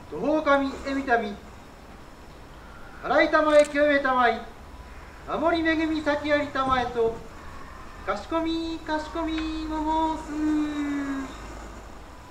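A man chants in long, drawn-out phrases.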